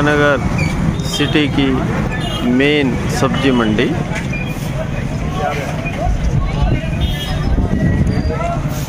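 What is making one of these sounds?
Men call out and chatter in a lively crowd nearby.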